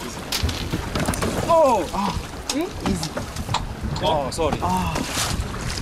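Water splashes against a boat's hull.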